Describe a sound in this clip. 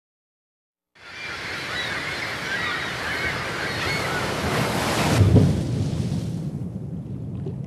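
Ocean waves surge and roar.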